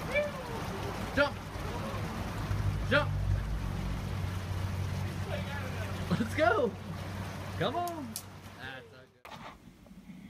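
A shallow stream babbles over rocks.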